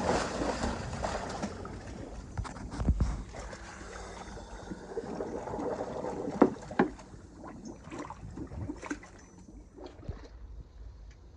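Water splashes and bubbles close by.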